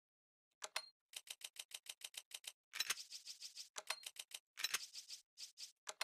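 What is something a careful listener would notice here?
Quick electronic menu clicks tick in a rapid series.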